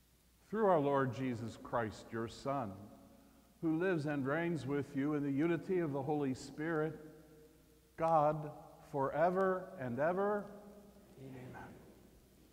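An elderly man sings a chant into a microphone in a large echoing hall.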